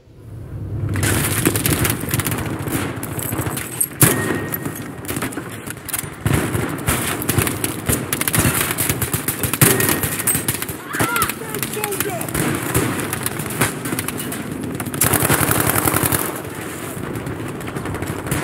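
Gunshots crack and echo in rapid bursts.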